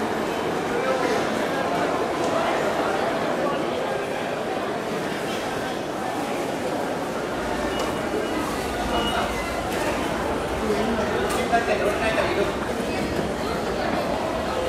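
Many footsteps shuffle and tap on a hard floor.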